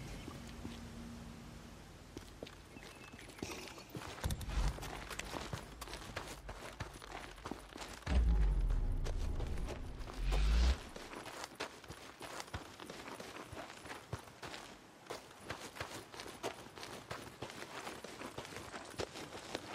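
Footsteps crunch quickly on dirt and gravel.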